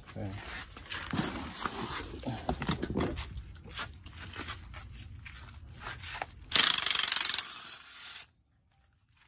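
Metal tools clank and scrape against an engine.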